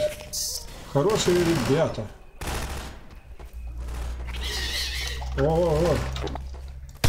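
A creature lets out warbling shrieks.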